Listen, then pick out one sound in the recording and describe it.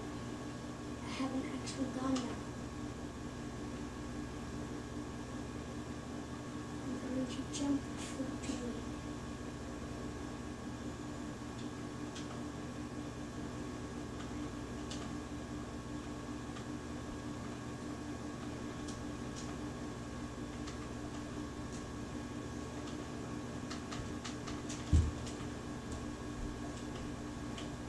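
A video game's clicks and bangs play faintly from a television speaker.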